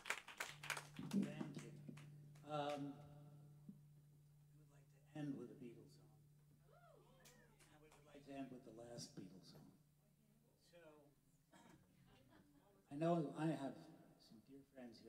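An older man speaks into a microphone, calmly, with pauses, heard through loudspeakers.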